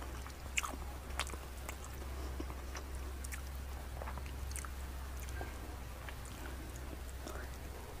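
Fingers tear soft cooked chicken apart.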